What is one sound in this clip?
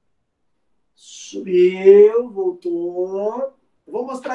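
A man speaks nearby, calmly.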